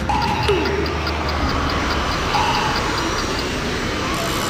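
A game countdown timer ticks rapidly.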